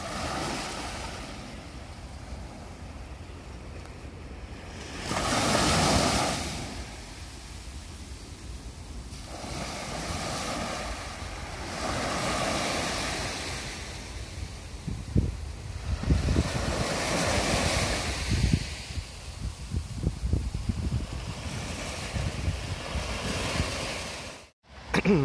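Small waves break and wash up onto a sandy shore in gentle, repeated surges.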